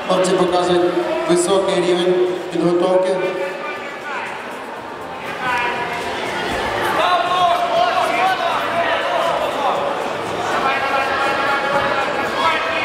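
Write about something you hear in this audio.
Several men shout loudly and excitedly in a large echoing hall.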